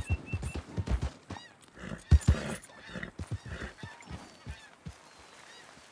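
A horse snorts and whinnies.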